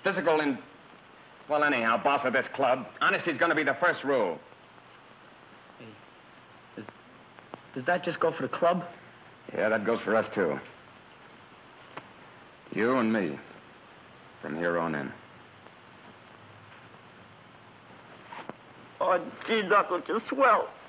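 A man speaks in a low, tense voice close by, heard through an old, narrow-sounding recording.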